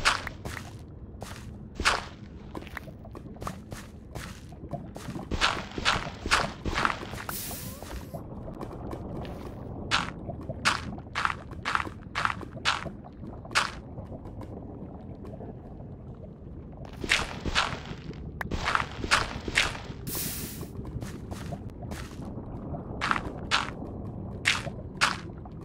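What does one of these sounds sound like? Lava bubbles and pops in a low, steady rumble.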